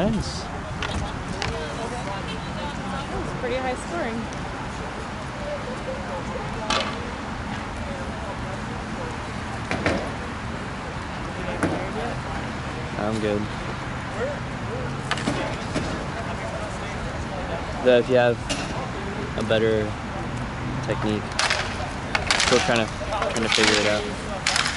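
Hockey sticks clack against each other and a ball.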